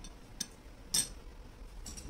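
A metal spoon clicks against a ceramic plate.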